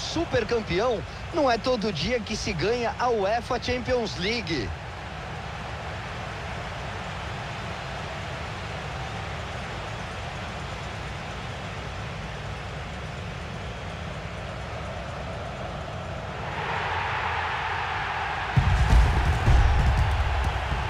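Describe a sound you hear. A large stadium crowd cheers steadily.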